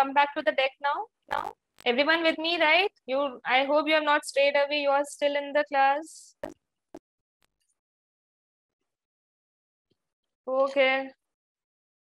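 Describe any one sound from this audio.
A young woman speaks calmly into a close microphone, as if over an online call.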